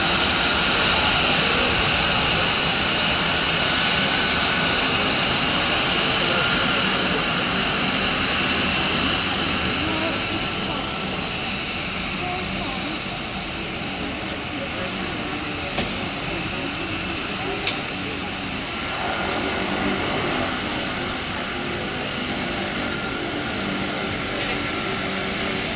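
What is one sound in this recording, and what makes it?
A floatplane's engines roar steadily as it taxis on the water.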